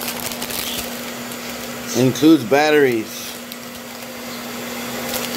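A plastic package crinkles.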